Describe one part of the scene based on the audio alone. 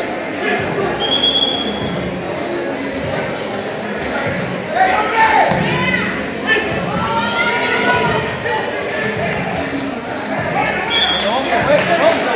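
Sneakers squeak sharply on the wooden court.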